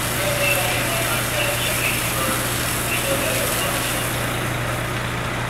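Water sprays from a hose with a steady hiss.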